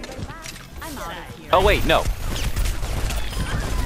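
A heavy gun fires rapid shots.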